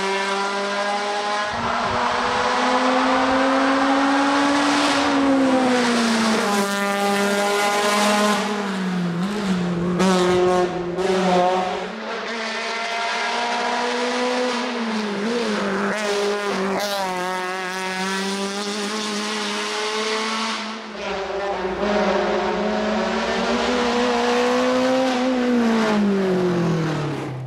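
A race car engine roars loudly, revving up and down as the car speeds by.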